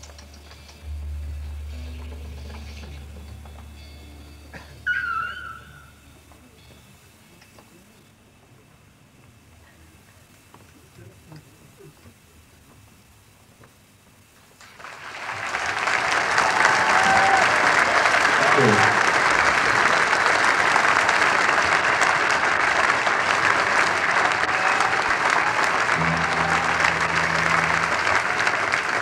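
A bass guitar plays loudly through an amplifier.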